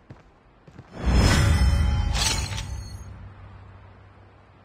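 A short triumphant music sting swells and slowly fades.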